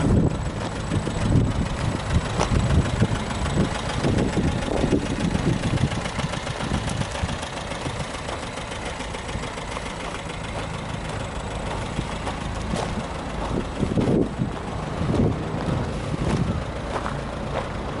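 Footsteps crunch on gravel.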